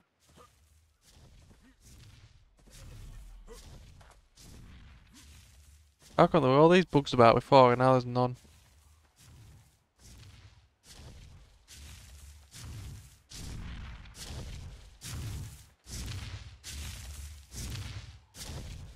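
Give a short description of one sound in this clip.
Footsteps crunch steadily through grass and dirt.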